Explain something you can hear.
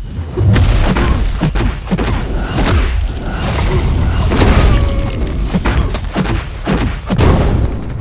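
Game punches and blows land in quick, heavy hits.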